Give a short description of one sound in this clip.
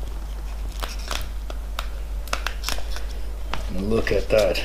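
A plastic wrapper crinkles and rustles as it is pulled off.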